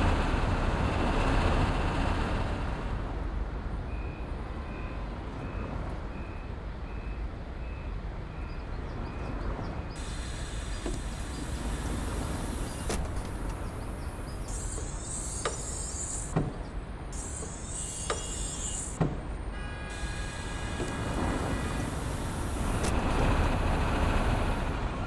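A bus engine idles with a low, steady rumble.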